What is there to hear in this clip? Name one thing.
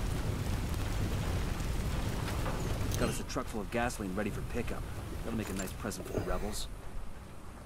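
A large fire roars with a deep rumble.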